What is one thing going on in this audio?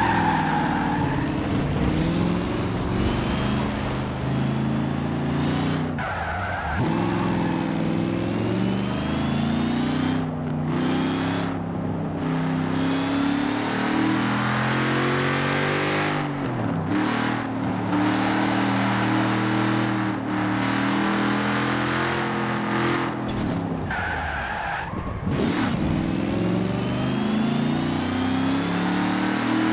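A truck engine roars and revs up and down.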